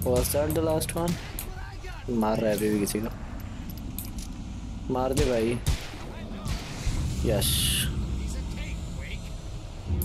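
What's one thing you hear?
Gunshots crack one after another.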